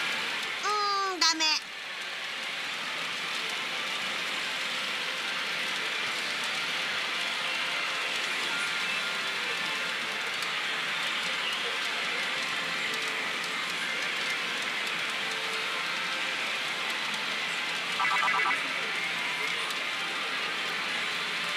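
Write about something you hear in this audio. A loud, steady din of gaming machines fills a noisy hall.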